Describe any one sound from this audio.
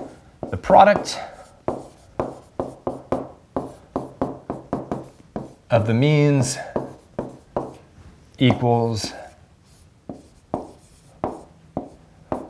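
A stylus taps and scratches while writing.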